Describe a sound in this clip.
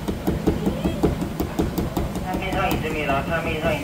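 A knife taps and slices against a cutting board.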